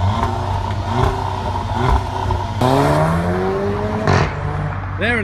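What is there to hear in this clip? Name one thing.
A car exhaust crackles and pops.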